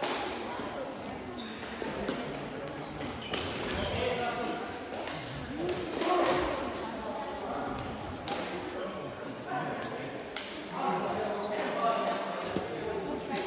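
Badminton rackets hit a shuttlecock with sharp pops in a large echoing hall.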